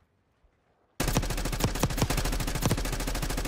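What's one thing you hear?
A rifle fires rapidly in bursts.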